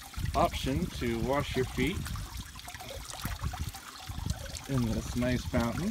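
Water splashes as a bare foot dips into a shallow basin.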